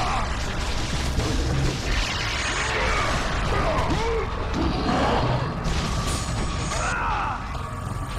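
Blades slash and strike flesh with wet, heavy hits.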